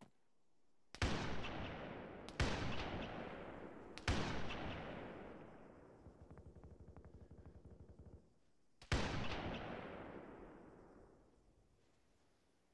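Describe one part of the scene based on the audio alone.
A rifle fires loud single shots that echo and roll away across open terrain.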